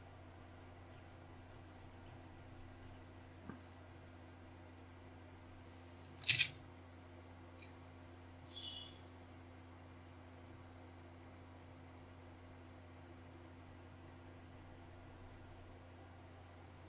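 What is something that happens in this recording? A hobby knife scrapes and ticks on plastic.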